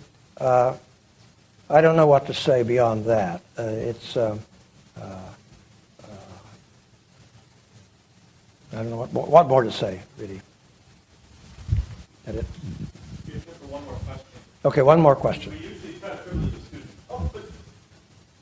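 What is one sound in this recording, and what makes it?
An elderly man speaks calmly through a microphone in a large room with light echo.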